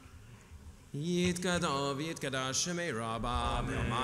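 A man chants in a steady sung voice through a microphone in an echoing hall.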